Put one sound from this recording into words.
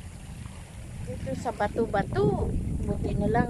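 A young woman calls out in a high voice nearby.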